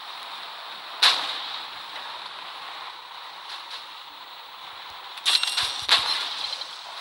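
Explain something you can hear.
A tank cannon fires with a sharp, loud boom.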